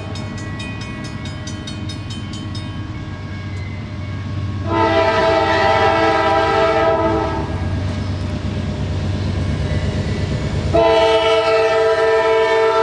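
A diesel locomotive engine rumbles heavily as a freight train rolls past.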